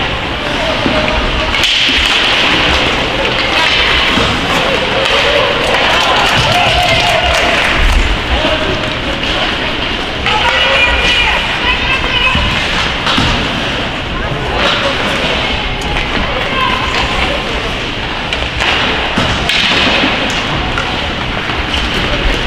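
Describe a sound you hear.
Ice skates scrape across the ice in an echoing arena.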